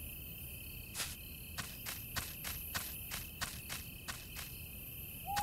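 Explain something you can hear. Footsteps crunch steadily on a forest path.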